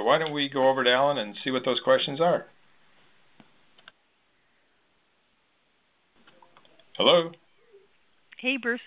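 A man speaks calmly over a phone line.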